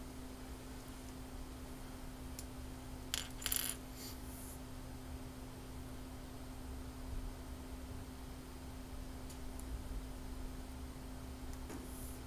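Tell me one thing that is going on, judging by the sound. A man taps keys on a laptop keyboard.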